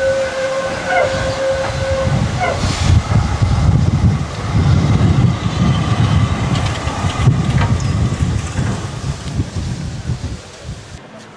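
A tram rumbles past close by on its rails.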